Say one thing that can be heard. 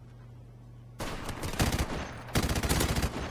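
A machine gun fires rapid bursts up close.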